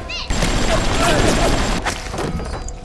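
A machine gun fires in a rapid burst.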